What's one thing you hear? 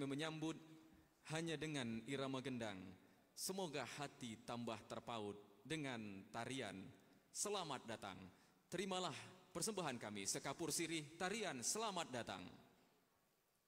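A man speaks into a microphone, reading out formally in a large room.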